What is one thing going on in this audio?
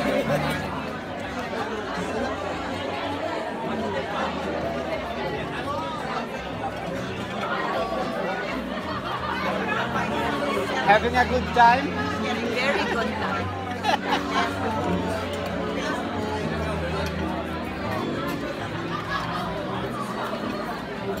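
Many adult voices chatter and murmur in a busy room.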